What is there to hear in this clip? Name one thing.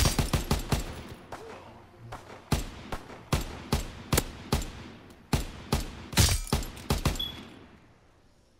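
Gunshots fire in quick bursts, loud and close.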